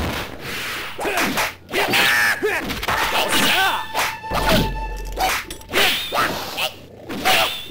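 Blades swish and clash in a fast game fight.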